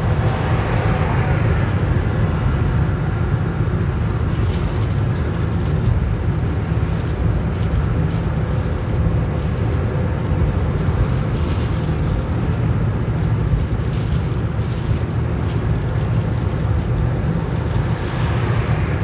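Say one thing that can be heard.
A car engine hums steadily with loud road rumble from inside the car.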